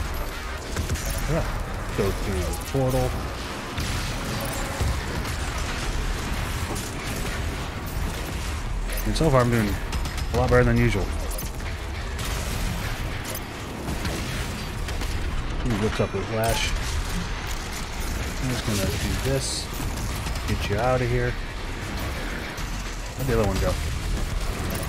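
Monsters roar and growl.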